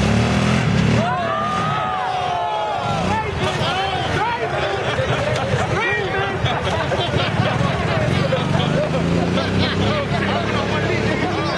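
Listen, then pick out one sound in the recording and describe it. Young men shout and cheer excitedly outdoors.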